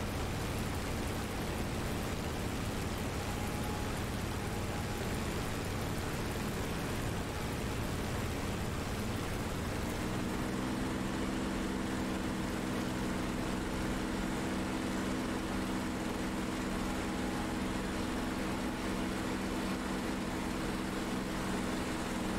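Wind rushes loudly past an aircraft canopy.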